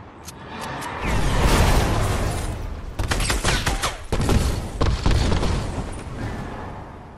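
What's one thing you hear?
A loud rushing whoosh launches into the air.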